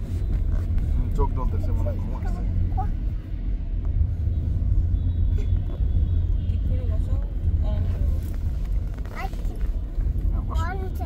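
A young child speaks in a high voice close by.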